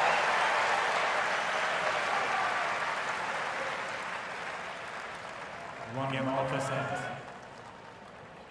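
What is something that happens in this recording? A large crowd cheers and applauds loudly, then slowly dies down.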